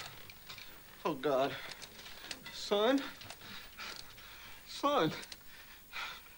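An elderly man speaks loudly.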